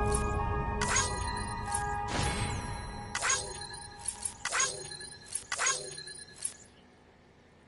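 Short bright chimes ring out one after another as scores are tallied.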